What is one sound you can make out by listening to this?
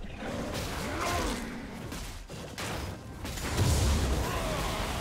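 Spell blasts and weapon hits crackle and thud in a game battle.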